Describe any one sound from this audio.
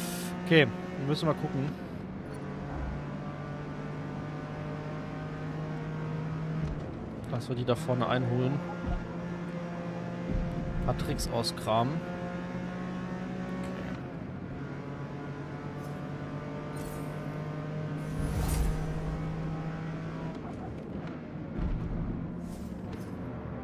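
A racing car engine drones steadily at high revs, rising and falling as the gears shift.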